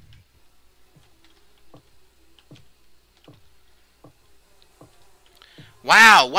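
Footsteps thud softly on a wooden floor at a steady pace.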